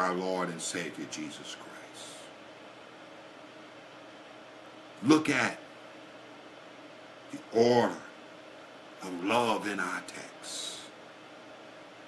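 An older man speaks calmly and slowly in short phrases, close by.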